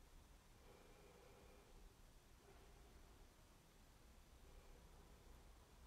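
A woman speaks calmly and quietly nearby.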